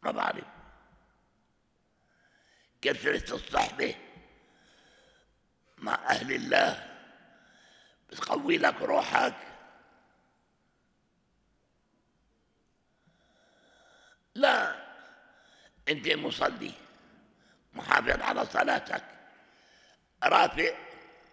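Speech echoes in a large reverberant hall.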